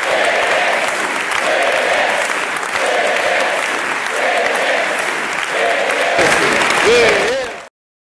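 A large crowd chants in rhythm in a big echoing hall.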